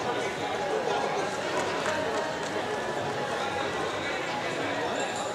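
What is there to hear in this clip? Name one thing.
Many voices chatter and murmur in a large echoing hall.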